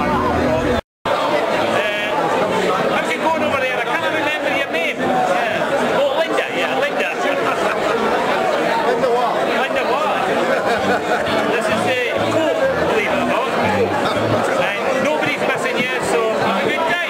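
A middle-aged man talks animatedly close by.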